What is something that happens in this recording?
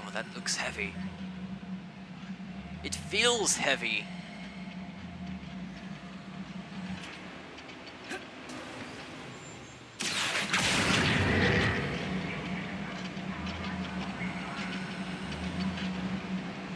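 Low machinery hums steadily in a large echoing space.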